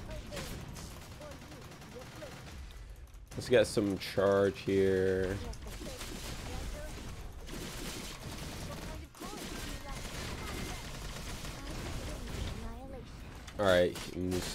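Blades slash and clang in rapid, heavy hits.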